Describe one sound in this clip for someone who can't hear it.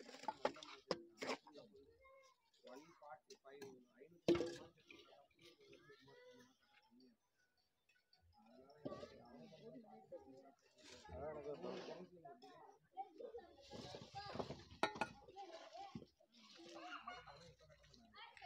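Bricks clack and knock against each other.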